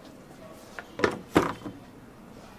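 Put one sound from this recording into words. A lid clicks onto a plastic cup.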